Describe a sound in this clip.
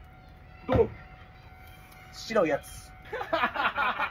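A drink can is cracked open with a hiss.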